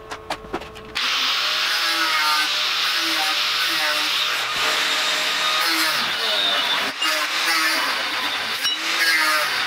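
An angle grinder whines as it cuts into steel.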